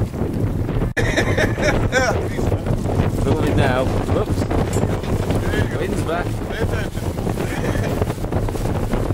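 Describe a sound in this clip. A man speaks with animation close by, outdoors in wind.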